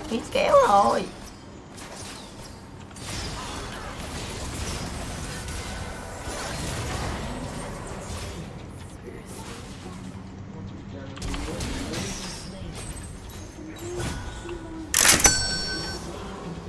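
Game spell effects whoosh and clash.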